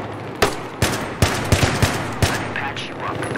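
Rifle shots crack in short bursts, echoing around a large hall.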